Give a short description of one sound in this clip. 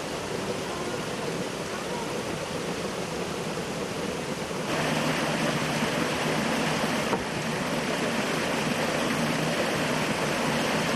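Wet cloth splashes as it is pushed in water.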